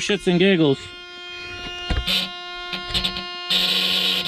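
Keys jingle and click as a key turns in an ignition.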